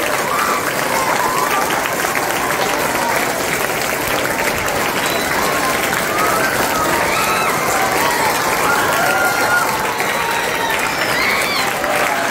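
A large group of children claps hands steadily.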